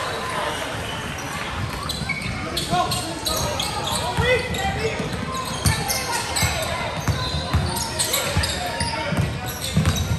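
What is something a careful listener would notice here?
Sneakers squeak sharply on a polished floor.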